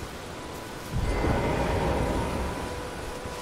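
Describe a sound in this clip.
A magical burst whooshes and shimmers.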